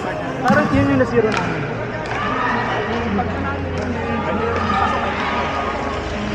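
Young people chatter and call out in an echoing hall.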